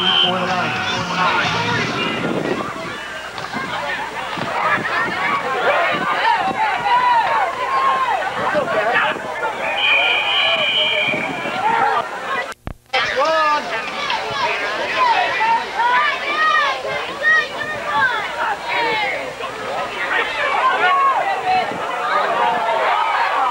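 A crowd shouts and cheers loudly outdoors.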